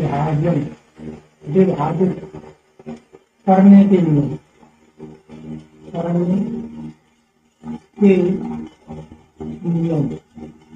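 A man speaks calmly and clearly, close by, explaining in short phrases.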